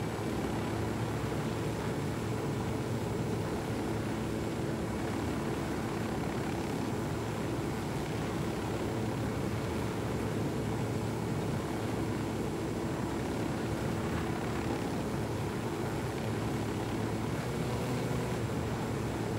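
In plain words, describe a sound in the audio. A helicopter's rotor thumps and its engine roars steadily, close by.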